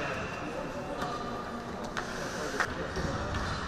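Hockey sticks clack against the puck on the ice.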